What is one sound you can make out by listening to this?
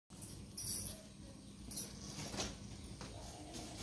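A cloth curtain rustles.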